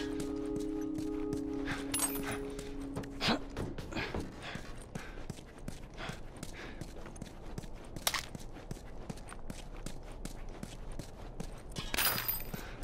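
Footsteps tread on a concrete floor.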